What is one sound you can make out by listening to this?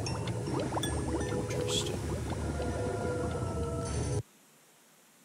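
A swirling portal hums and whooshes.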